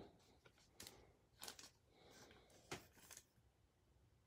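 Trading cards click and slide against each other.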